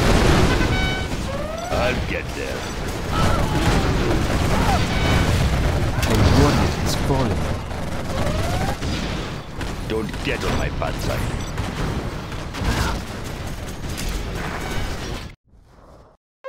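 Explosions and gunfire boom and crackle in a battle.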